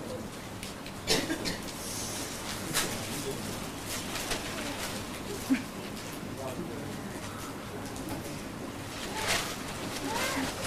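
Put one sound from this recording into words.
Newspaper pages rustle.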